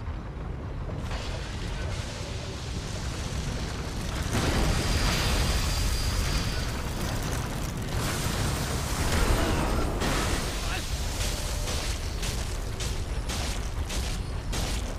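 A loud, rushing roar swells up and stays loud.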